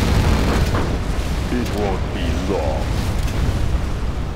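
Tank guns fire in quick sharp bursts.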